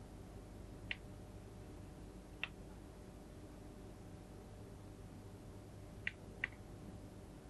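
Cutlery clinks lightly against a plate.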